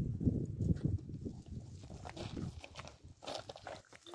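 Footsteps crunch on flat stones.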